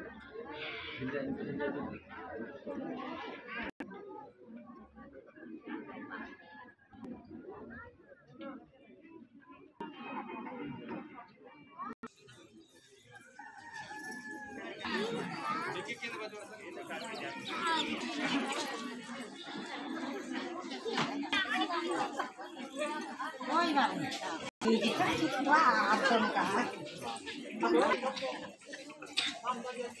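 A group of women sing together.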